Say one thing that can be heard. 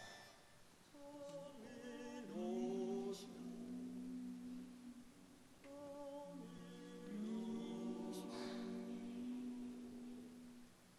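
A men's choir sings slowly in harmony.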